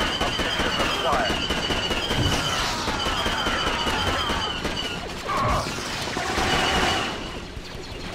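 Blaster shots fire rapidly.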